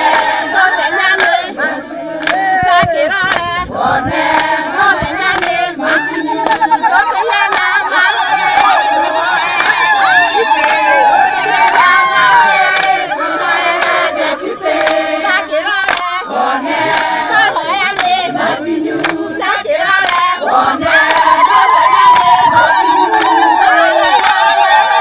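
People in a crowd clap their hands in rhythm.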